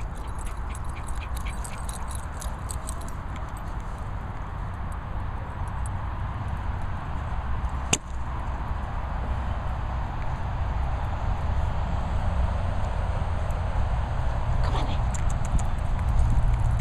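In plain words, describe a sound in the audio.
Wind rumbles across a microphone outdoors.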